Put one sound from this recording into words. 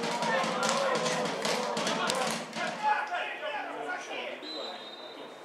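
Young men shout across an outdoor football pitch.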